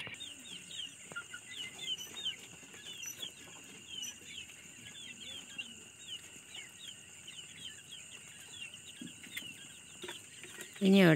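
Many young chicks peep softly and steadily.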